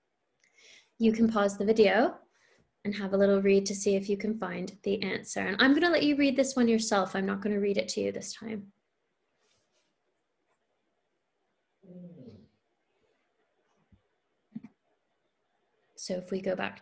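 A young woman reads aloud and talks calmly, close to a microphone.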